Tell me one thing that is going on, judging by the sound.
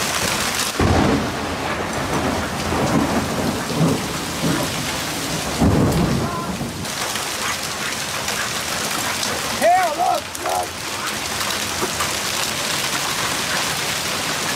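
Hail patters and clatters steadily on the ground outdoors.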